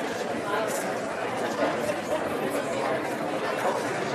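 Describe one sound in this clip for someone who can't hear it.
An elderly man talks with a young man close by.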